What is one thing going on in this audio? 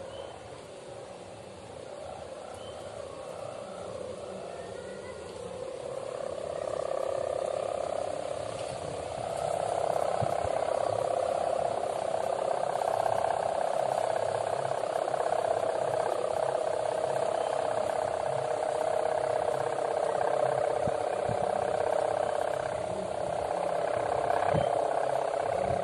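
A kite's hummer buzzes with a steady drone overhead, growing louder.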